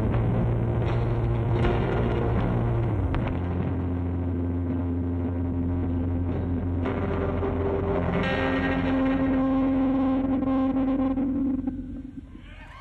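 A rock band plays loudly through a large sound system.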